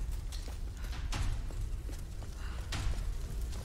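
Fire crackles nearby.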